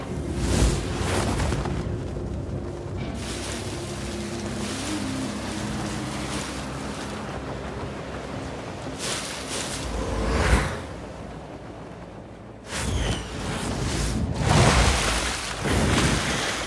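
A magical blast whooshes and roars.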